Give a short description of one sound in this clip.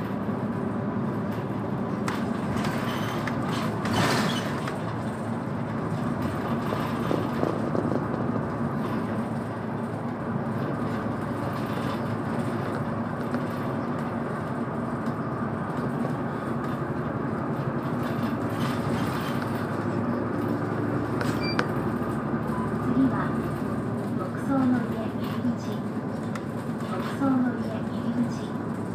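A vehicle engine hums steadily from inside while driving.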